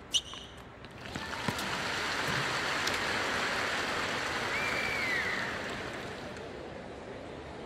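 A crowd cheers and applauds loudly, then fades.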